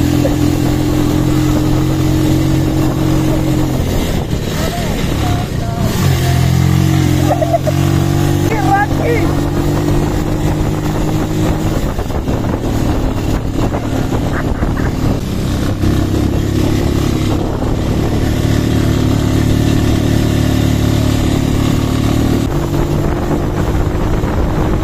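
A motorcycle engine rumbles steadily close by, rising and falling in pitch as it rides downhill.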